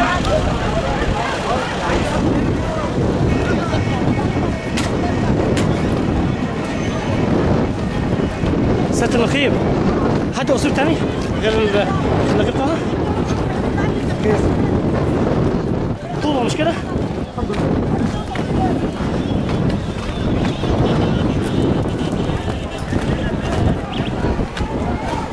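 A crowd of men shouts and clamours nearby outdoors.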